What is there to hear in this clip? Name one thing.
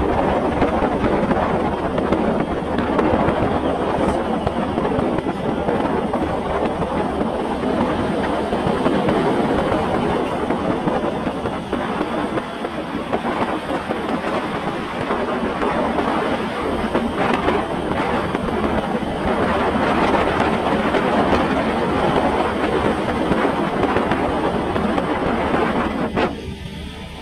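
Wind roars and buffets loudly against the microphone.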